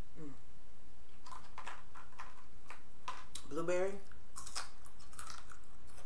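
Food crunches and clicks as a woman eats.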